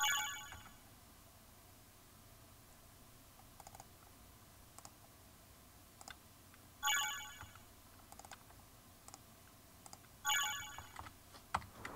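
A short electronic chime sounds several times.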